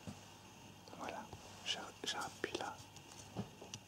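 A man speaks quietly close by.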